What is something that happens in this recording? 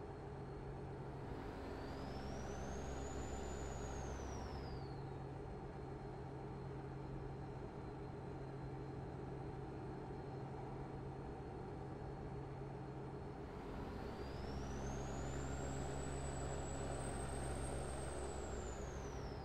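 A truck engine hums steadily as it drives along a highway.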